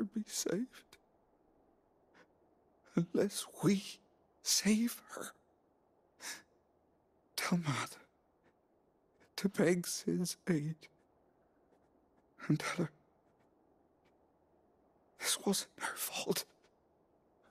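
A weak man speaks haltingly in a strained, dying voice.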